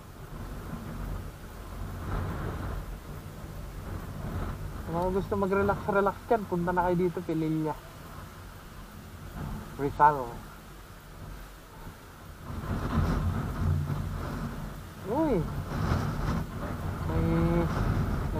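Wind buffets the microphone outdoors in gusts.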